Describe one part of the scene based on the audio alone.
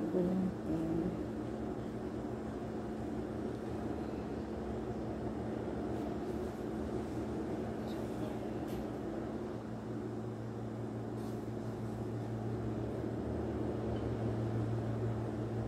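Hands softly knead and roll dough.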